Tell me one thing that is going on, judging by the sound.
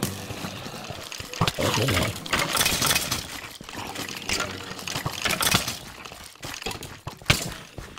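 A sword strikes repeatedly with quick thuds.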